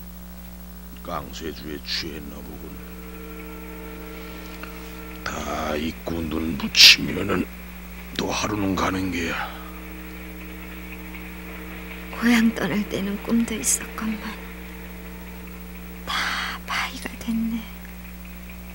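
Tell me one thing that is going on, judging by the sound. A man speaks quietly and slowly nearby.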